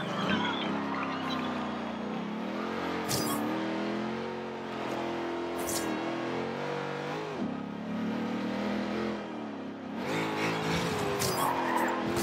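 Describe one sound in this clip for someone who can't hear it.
Tyres squeal through the corners.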